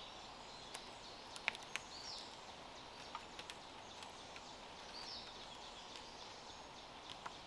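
A cord rustles and creaks as it is pulled tight around a wooden pole.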